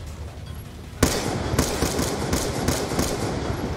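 A rifle fires a single loud shot that echoes.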